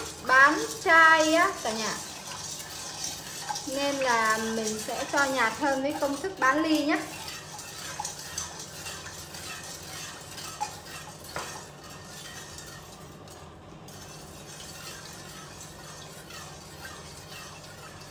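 A ladle stirs and swishes through water.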